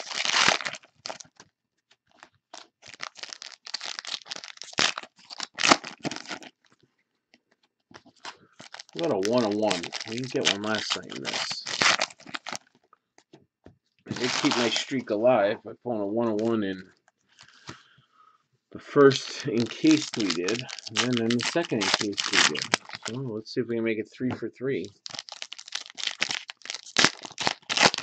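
Hands crinkle and tear open foil card packs.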